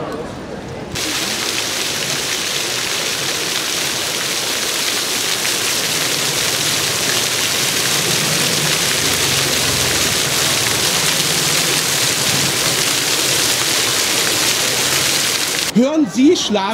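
Fountain jets splash and spray steadily onto wet paving.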